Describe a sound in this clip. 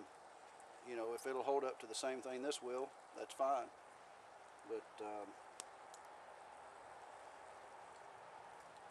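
A small campfire crackles.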